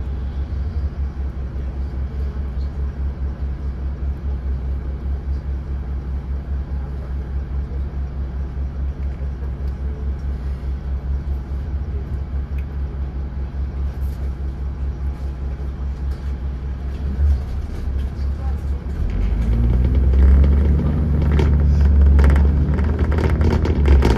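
Cars and vans pass by on the road.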